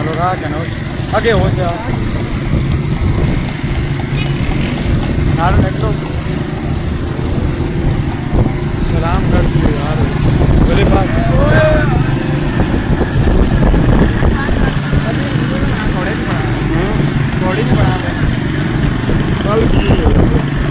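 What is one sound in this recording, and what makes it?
Motorcycle engines rumble steadily close by.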